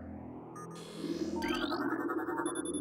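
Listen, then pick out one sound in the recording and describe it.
An electronic scanner beeps and hums.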